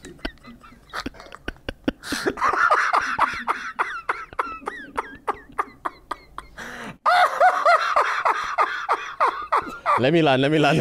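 A man laughs loudly and breathlessly close to a microphone.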